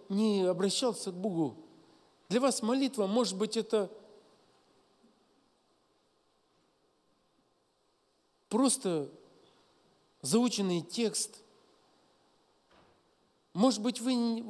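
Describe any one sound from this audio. A middle-aged man speaks calmly into a microphone, with long pauses, in a large echoing hall.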